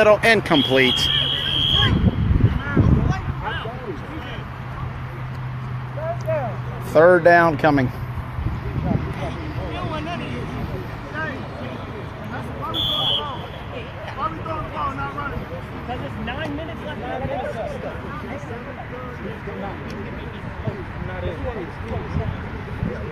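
Men talk and call out to each other outdoors, close by and farther off.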